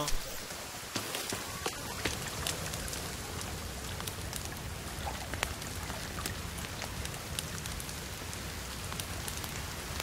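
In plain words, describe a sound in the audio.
A campfire crackles and pops close by.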